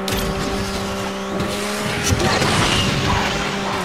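A nitro boost whooshes loudly.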